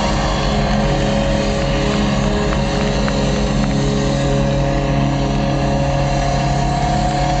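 Loud live rock music plays from a stage, heard from within the crowd.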